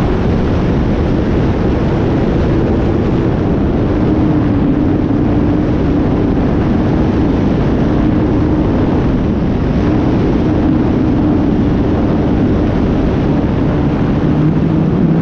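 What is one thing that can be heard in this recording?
Wind rushes loudly past the aircraft.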